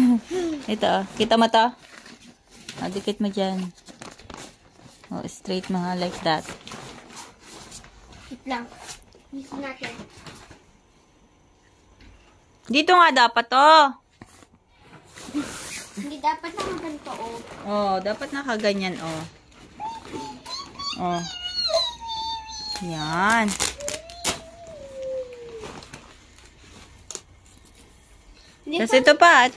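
Nylon fabric rustles as hands handle it.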